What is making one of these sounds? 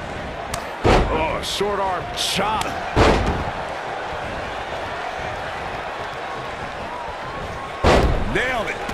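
A large crowd cheers and murmurs in an arena.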